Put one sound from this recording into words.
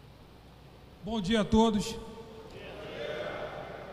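A man speaks briefly into a microphone, heard over loudspeakers in a large echoing hall.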